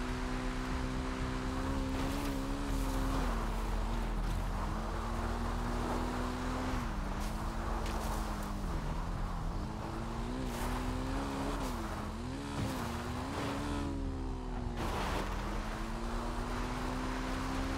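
A motorbike engine hums steadily, its pitch rising and dipping as it speeds up and slows down.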